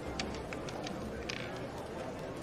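Casino chips click against each other on a table.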